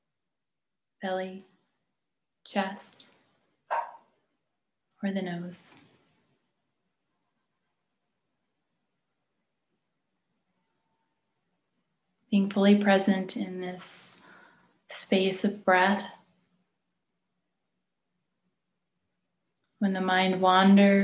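A woman speaks calmly and slowly into a nearby microphone, with long pauses.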